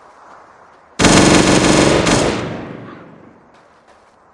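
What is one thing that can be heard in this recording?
A gun fires a loud shot that echoes away.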